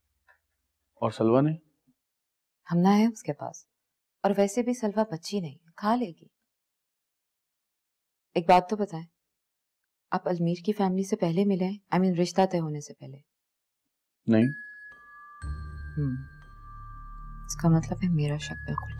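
A woman speaks calmly and firmly, close by.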